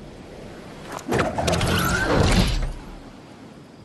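A glider snaps open with a loud whoosh.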